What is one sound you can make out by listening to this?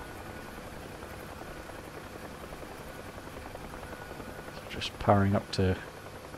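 A helicopter engine drones steadily.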